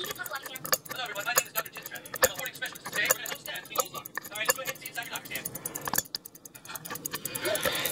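A small watch movement ticks rapidly and steadily.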